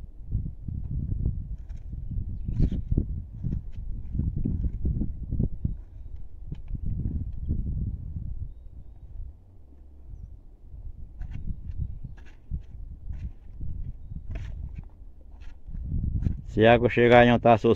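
A hoe scrapes and scratches through loose soil.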